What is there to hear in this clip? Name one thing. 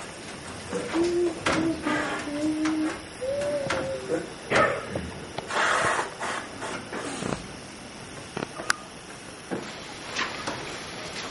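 A flute plays a melody.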